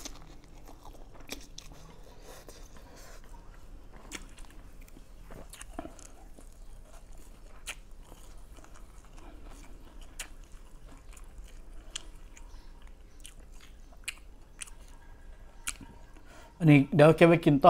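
A man slurps and chews noodles close by.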